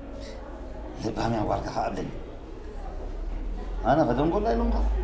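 An older man speaks in an upset, pleading voice close by.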